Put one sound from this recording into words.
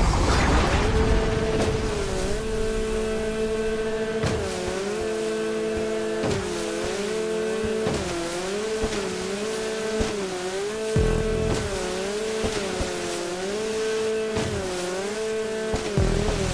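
A jet ski engine whines, its pitch rising and falling as it revs.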